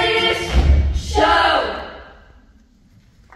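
A choir of young voices sings a final chord that rings out in a large hall.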